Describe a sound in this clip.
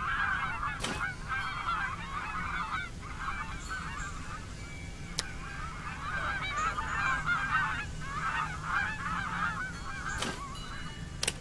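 A short chime rings as an item is picked up.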